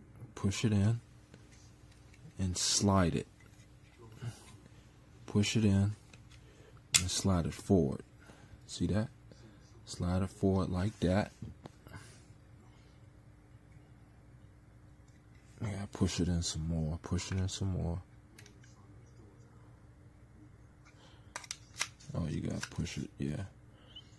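Small metal parts click and scrape against each other.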